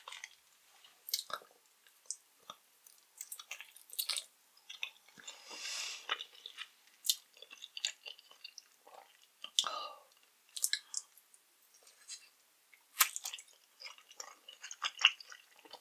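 Soft jelly candy squishes and smacks as a woman chews close to a microphone.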